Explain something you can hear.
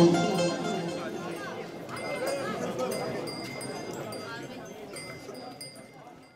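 An accordion plays a lively tune outdoors.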